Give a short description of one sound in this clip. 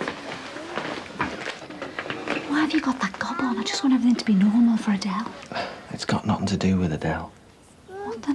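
A woman speaks tensely and urgently, close by.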